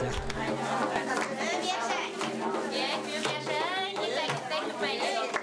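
Several women sing together loudly.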